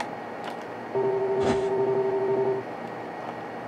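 A game menu chimes with a steady electronic tone.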